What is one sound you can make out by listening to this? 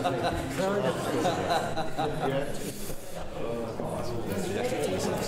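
Men talk with one another in a room.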